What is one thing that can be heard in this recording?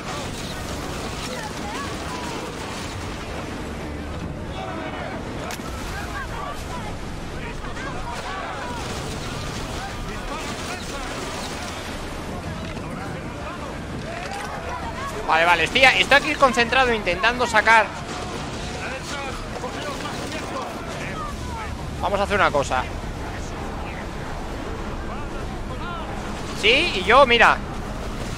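Waves rush and wash against a wooden ship's hull.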